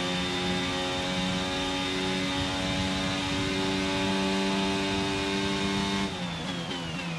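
A racing car engine screams steadily at high revs.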